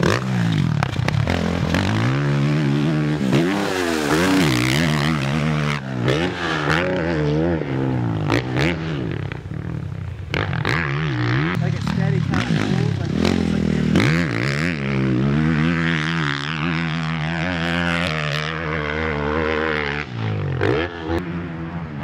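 Tyres spray loose dirt as a dirt bike skids through turns.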